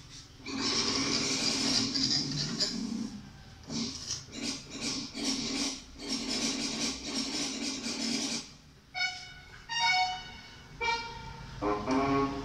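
A child plays a tune on an electronic keyboard.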